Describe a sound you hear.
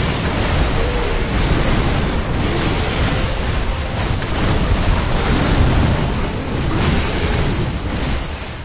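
A huge beast roars and growls loudly.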